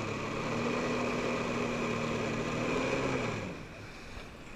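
Water jets spray and hiss loudly.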